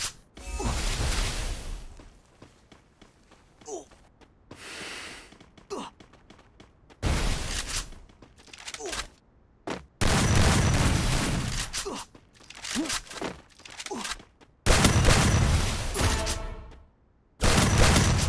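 Gunfire rings out in loud, rapid bursts.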